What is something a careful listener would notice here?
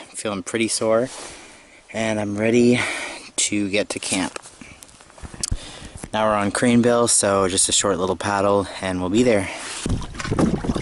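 A man talks calmly, close up.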